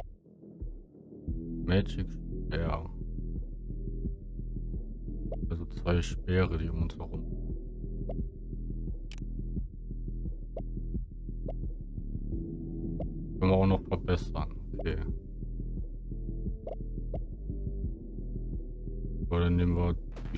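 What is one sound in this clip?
Calm electronic game music plays steadily.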